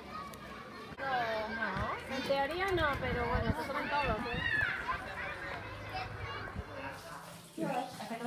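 Children chatter and call out outdoors.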